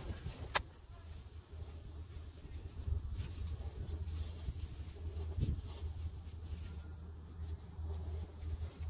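Fingers press and pat soft soil around a small plant.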